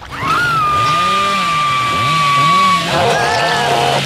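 A chainsaw engine revs up and down.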